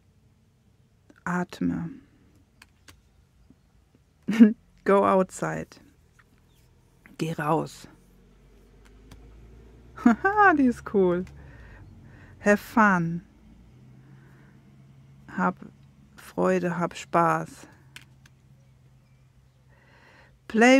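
Stiff cards slide and tap softly against each other.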